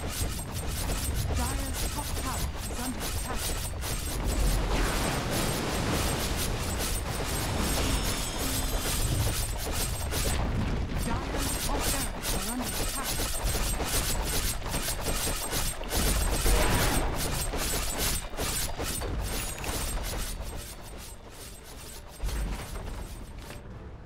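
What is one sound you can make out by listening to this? Game weapons clash and strike rapidly.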